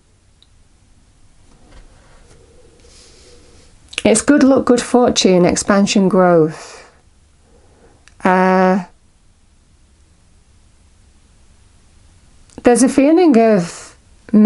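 Playing cards slide and tap softly on a cloth surface.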